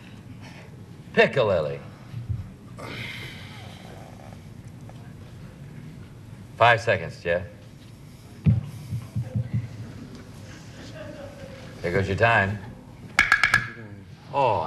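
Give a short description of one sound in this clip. A young man speaks hesitantly into a microphone.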